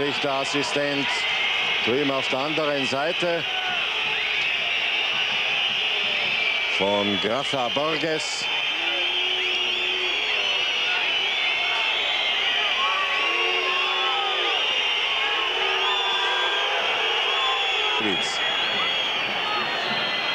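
Many fans in a stadium crowd whistle shrilly.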